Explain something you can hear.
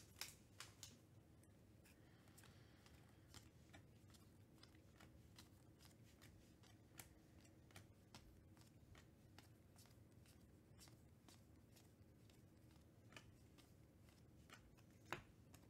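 Trading cards click softly as they are flipped one by one.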